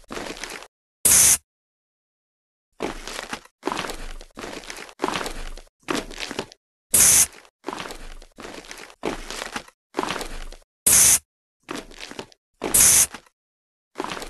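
A spray can hisses in short, sharp bursts.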